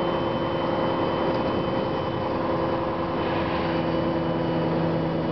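A bus engine hums steadily while the bus drives along.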